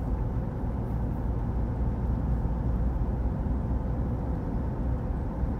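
A car engine hums steadily from inside the car as it drives down the road.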